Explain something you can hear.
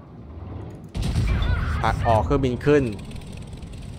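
Heavy ship guns fire with deep booms.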